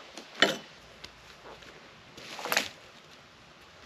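Boots crunch on dry leaves and twigs.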